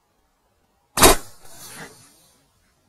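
A shotgun fires a single loud shot outdoors.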